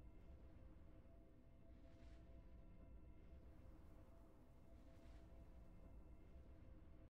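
Triumphant game music plays softly.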